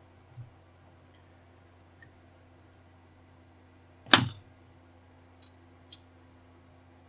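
Plastic model parts click and tap against one another in a person's hands.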